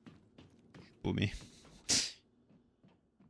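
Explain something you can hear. A burst of gas hisses loudly.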